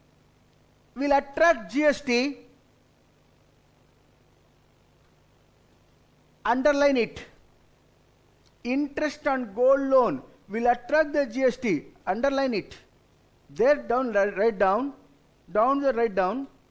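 A middle-aged man speaks calmly into a microphone, in pauses.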